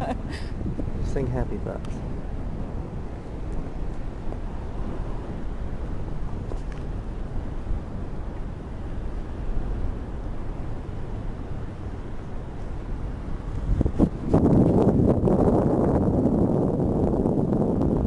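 Wind buffets and rumbles loudly against the microphone high above the sea.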